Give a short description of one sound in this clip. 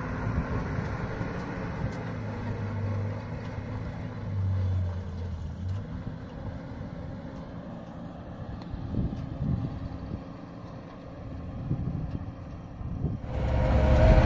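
A pickup truck's engine hums as the truck drives away over rough ground.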